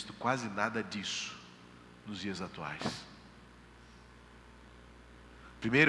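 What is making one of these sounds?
A middle-aged man speaks calmly through a headset microphone, with pauses.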